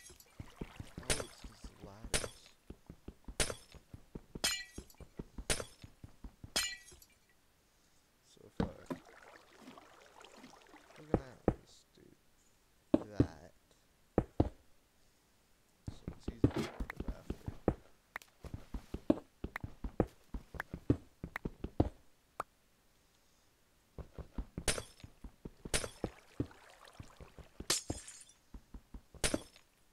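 Ice blocks are chipped and break with sharp crunching cracks.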